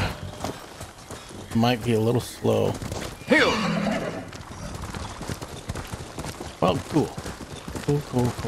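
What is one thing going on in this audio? A horse's hooves thud quickly on snowy ground.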